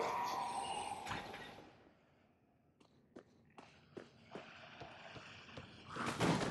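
Armoured footsteps clank.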